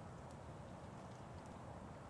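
Fireworks crackle and pop far off.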